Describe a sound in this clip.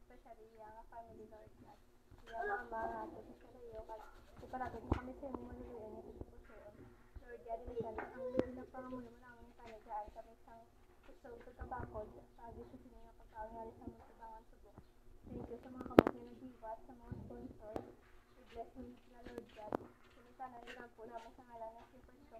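Young children talk and call out close by.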